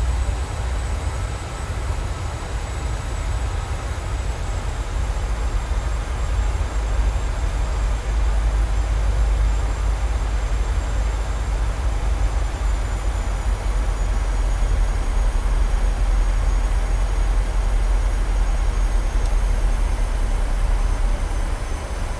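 Jet engines drone with a steady low roar of rushing air in flight.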